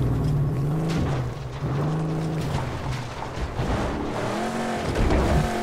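Metal clanks and scrapes as a car crashes down rocks.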